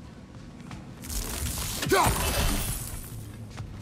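An axe whooshes through the air and lands with a metallic clang.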